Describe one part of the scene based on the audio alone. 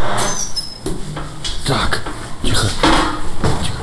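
A heavy metal door clanks open.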